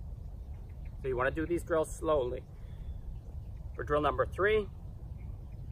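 A man speaks calmly outdoors, close by, in short phrases.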